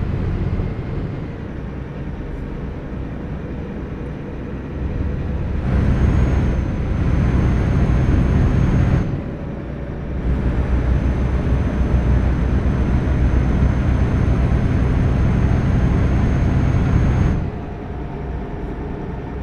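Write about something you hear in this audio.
A truck engine hums steadily and swells louder at times.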